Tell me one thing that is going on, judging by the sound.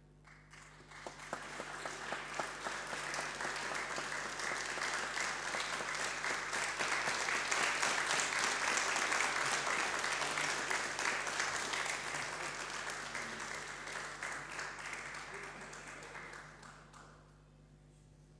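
An audience applauds warmly, then the clapping fades away.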